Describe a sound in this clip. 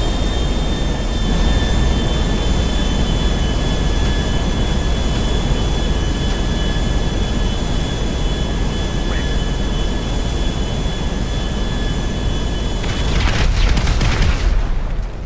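Jet engines roar steadily in strong rushing wind.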